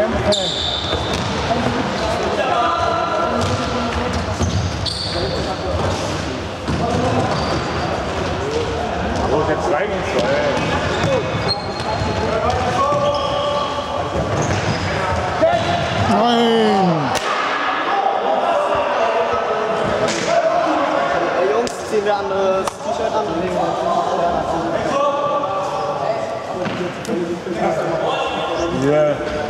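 Young boys shout and call out in a large echoing hall.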